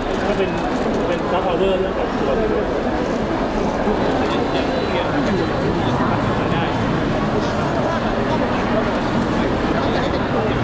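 A crowd of people chatters around the microphones.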